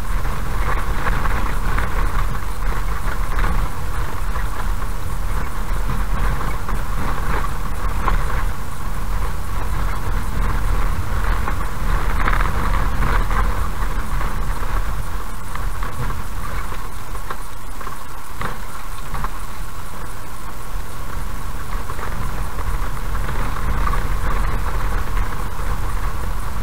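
Tyres rumble and crunch over a rough dirt road.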